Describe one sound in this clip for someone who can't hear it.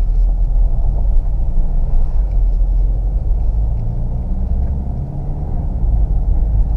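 A car engine hums steadily at low speed from inside the cabin.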